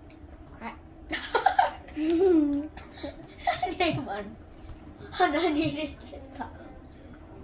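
A young girl laughs and talks excitedly close by.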